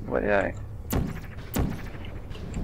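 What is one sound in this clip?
A futuristic gun fires with sharp electronic zaps.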